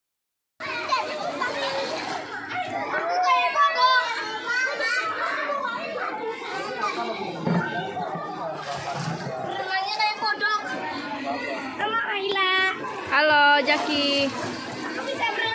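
Children shout and squeal excitedly in an outdoor pool.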